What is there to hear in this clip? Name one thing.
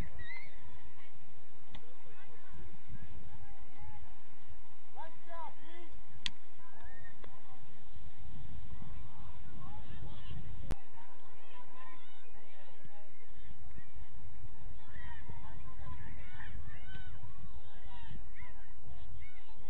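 Young players shout and call out across an open field in the distance.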